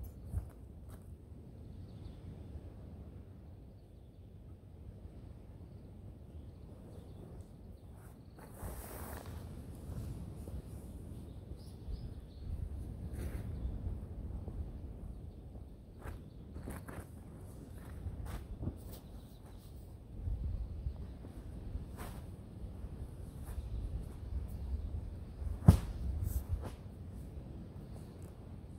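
Wind rumbles outdoors across a microphone.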